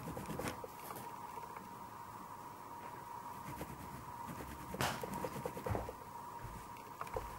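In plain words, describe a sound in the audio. A pastel crayon scratches and scrapes across paper.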